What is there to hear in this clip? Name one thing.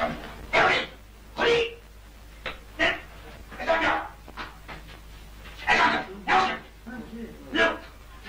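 A man speaks nearby in short, animated bursts.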